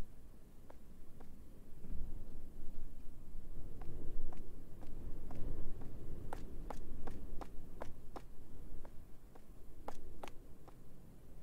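Footsteps tap on a hard floor at a steady walking pace.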